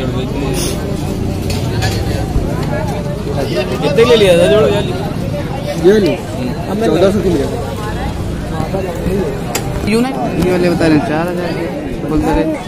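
Men talk loudly and excitedly close by.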